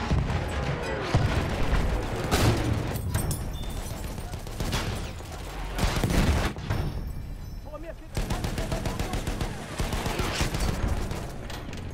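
A heavy gun fires in sharp, booming shots.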